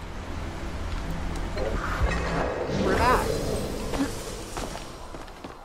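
A magical portal hums and whooshes.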